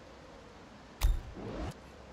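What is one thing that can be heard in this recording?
A short interface click sounds.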